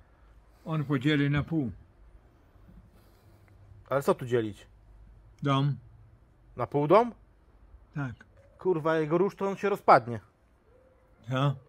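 A middle-aged man speaks calmly in short phrases close by.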